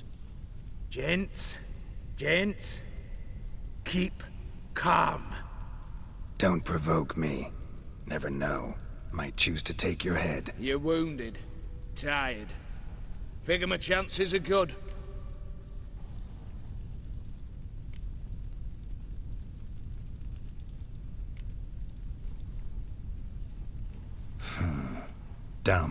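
A man speaks in a low, gravelly voice.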